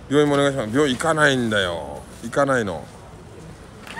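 A plastic bag rustles.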